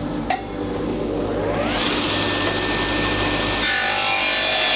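A table saw motor whirs up to speed.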